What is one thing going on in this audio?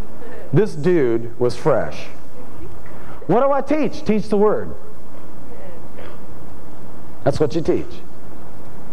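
A man speaks warmly and expressively, close to a microphone.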